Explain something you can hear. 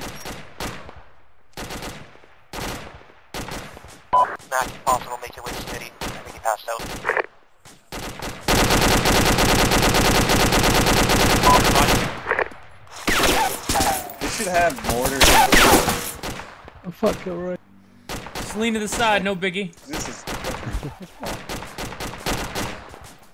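A rifle fires.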